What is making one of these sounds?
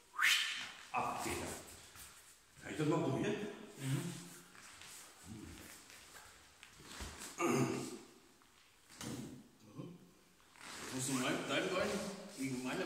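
Feet shuffle and thud on a padded mat.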